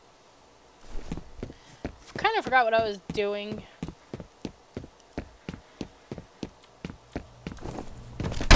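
Footsteps tread at a steady pace across a hard floor.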